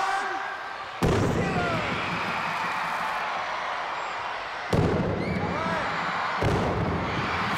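Loud booms go off and echo through a large arena.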